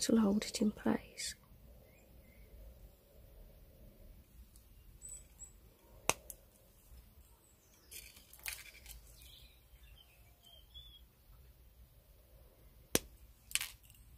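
Pliers snip and click against thin wire.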